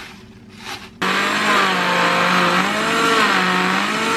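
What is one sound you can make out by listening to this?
A blender motor whirs loudly, chopping leaves.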